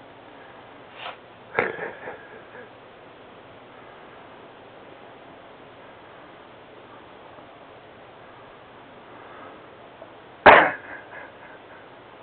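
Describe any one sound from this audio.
A small dog barks sharply a few times, close by.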